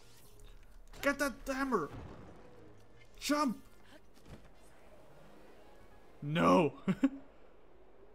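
A young man speaks in short excited bursts close to a microphone.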